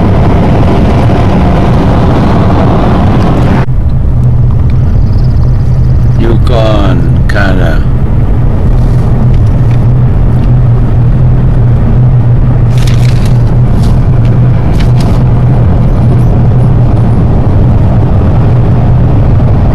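A car engine hums steadily from inside a moving car.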